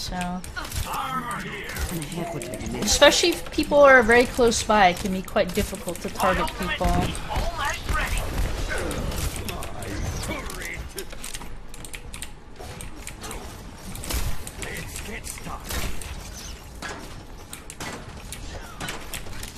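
Video game gunfire pops in quick bursts.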